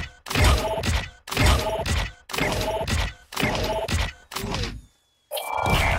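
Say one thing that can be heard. A game's score counter ticks up with repeated whooshing chimes.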